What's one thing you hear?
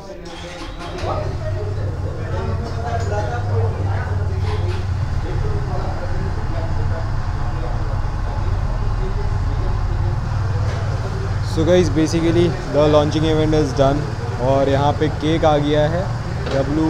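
A motorcycle engine starts and idles with a low rumble.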